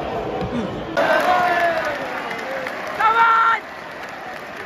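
A large crowd roars and cheers.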